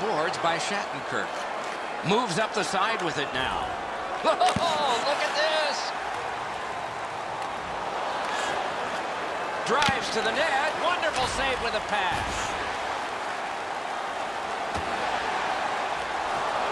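A large crowd murmurs and cheers steadily in a big arena.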